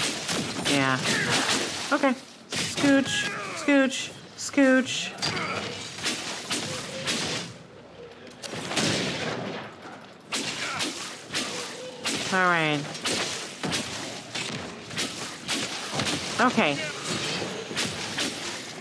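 Weapons clash and strike in quick blows.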